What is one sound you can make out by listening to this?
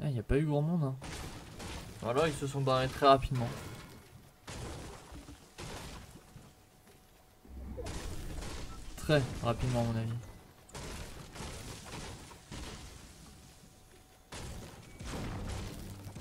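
A pickaxe strikes wood and leaves with repeated thuds.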